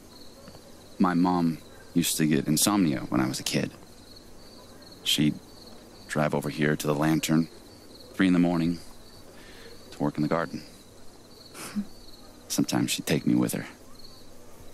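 A young man talks calmly and warmly, close by.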